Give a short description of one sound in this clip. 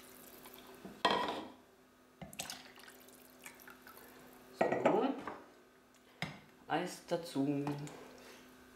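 Liquid pours and splashes into a plastic jug.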